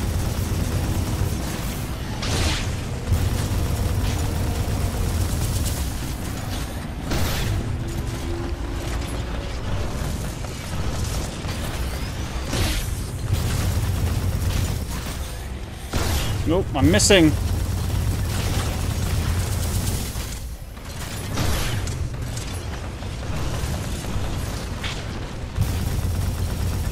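A large machine hums and rumbles steadily.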